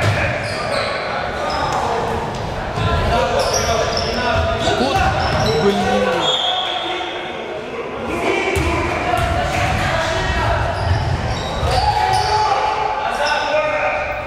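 A crowd of young spectators shouts and cheers in a large echoing hall.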